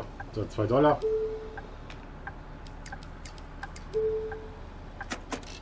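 A ticket machine gives a short, steady beep.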